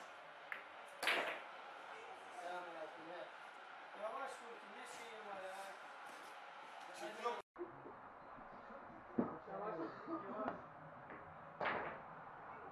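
Billiard balls click against each other.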